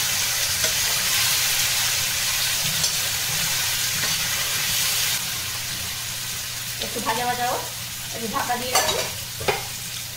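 A metal ladle scrapes and clinks against a pan.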